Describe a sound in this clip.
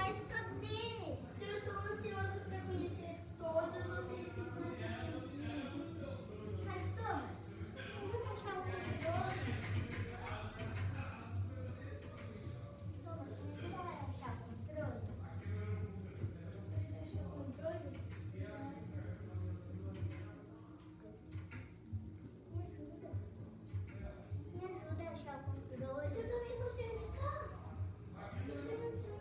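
Young children talk and chatter excitedly nearby.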